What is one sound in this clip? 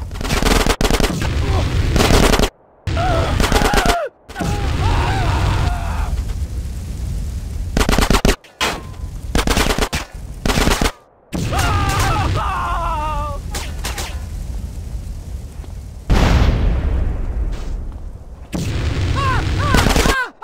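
A flamethrower roars in long bursts.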